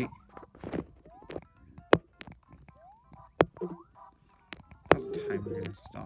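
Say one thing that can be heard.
Short springy video game jump sounds glide quickly upward, again and again.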